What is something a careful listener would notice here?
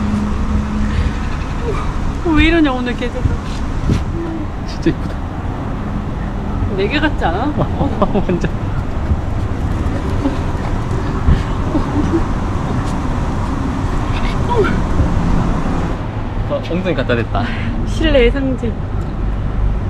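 A young woman talks affectionately, close by.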